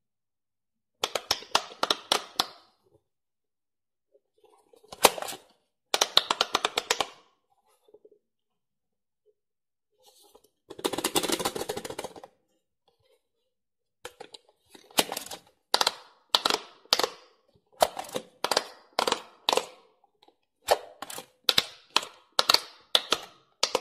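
Electronic toy beeps and jingles play in quick bursts.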